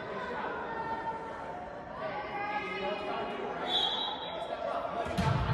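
A crowd of young women and spectators talk and call out in a large echoing gym.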